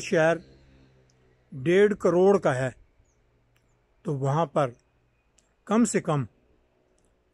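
An elderly man speaks calmly in short phrases close to the microphone.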